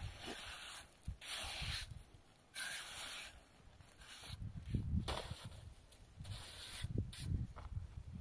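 A trowel scrapes wet cement across a rough surface in repeated strokes.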